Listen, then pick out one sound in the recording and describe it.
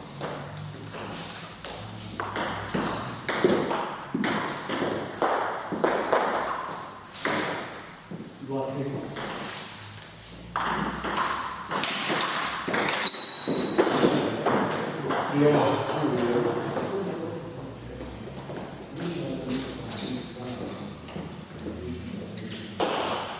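A ping-pong ball clicks back and forth between paddles and a table in an echoing room.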